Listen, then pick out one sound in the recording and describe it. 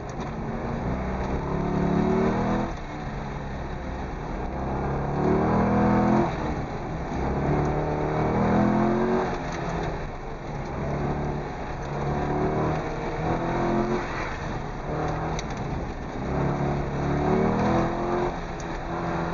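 Tyres squeal on pavement through tight turns.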